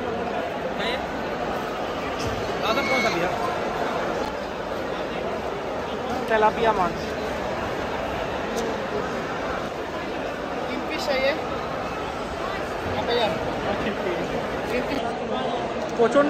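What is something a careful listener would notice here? A crowd chatters and murmurs all around in a busy, echoing hall.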